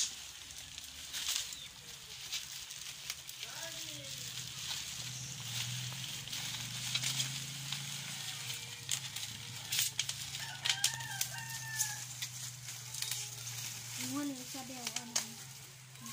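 Metal shears snip and clip sharply at close range.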